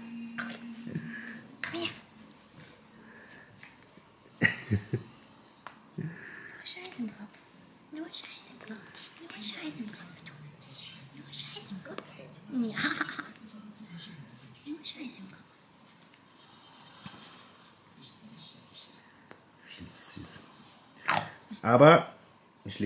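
A young woman talks softly to a puppy close by.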